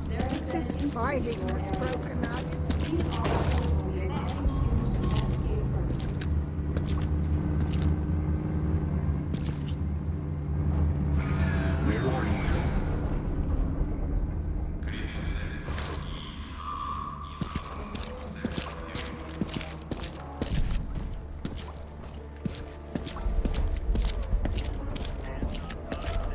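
Footsteps walk softly on hard ground.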